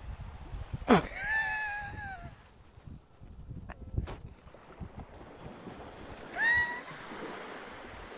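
A young man laughs loudly.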